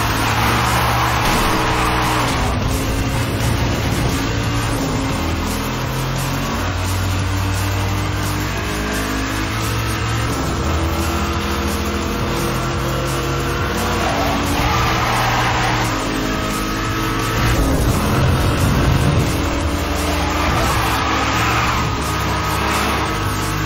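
Car tyres screech while drifting through bends.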